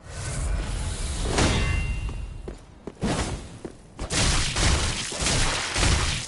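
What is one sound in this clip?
Heavy armored footsteps clank on stone.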